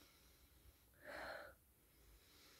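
A young woman sniffs a scent strip.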